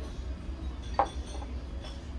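A small ceramic dish is set down on a wooden table.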